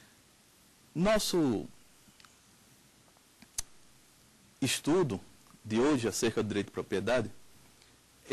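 A man speaks clearly into a microphone, presenting with animation.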